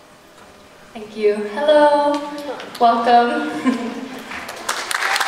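A young woman speaks cheerfully into a microphone.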